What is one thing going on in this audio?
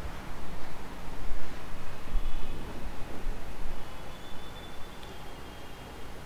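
A man speaks calmly into a clip-on microphone, close by.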